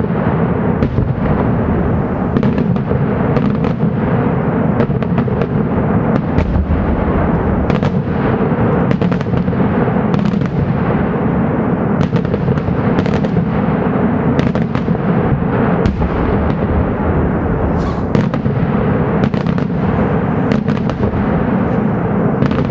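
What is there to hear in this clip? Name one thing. Fireworks bang and crackle overhead in rapid bursts.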